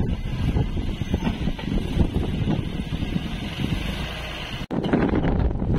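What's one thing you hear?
Loose soil pours and tumbles from a loader bucket.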